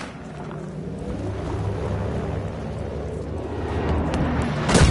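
A propeller plane drones overhead.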